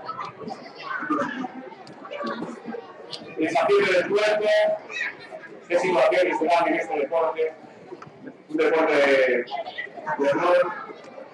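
A crowd of children shouts and cheers excitedly nearby.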